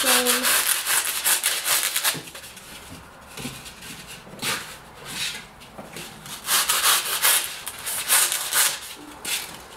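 A knife saws through floral foam with a dry scraping hiss.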